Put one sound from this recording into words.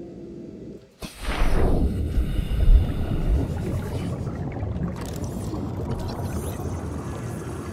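Water bubbles and rushes loudly underwater.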